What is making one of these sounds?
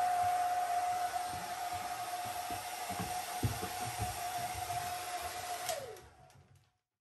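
A hair dryer blows with a steady whine, then winds down and stops.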